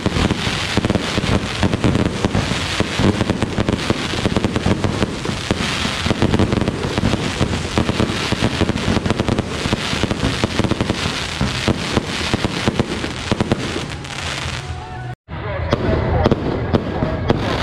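Fireworks boom loudly outdoors.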